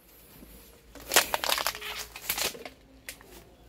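A plastic fruit bag rustles as it is handled.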